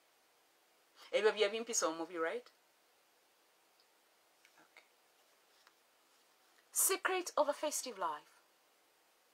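A woman speaks calmly and close by, in short bursts with pauses.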